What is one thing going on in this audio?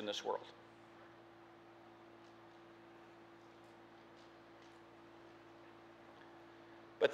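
A middle-aged man speaks calmly into a microphone, with long pauses.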